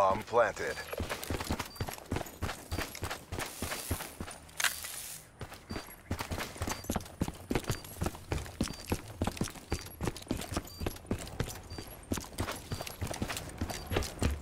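Footsteps run quickly over sand and hard ground.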